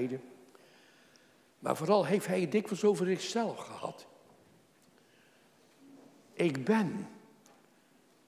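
An elderly man speaks with emphasis into a microphone, echoing slightly in a large room.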